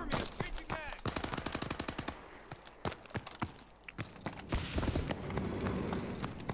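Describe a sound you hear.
Gunfire cracks in quick bursts.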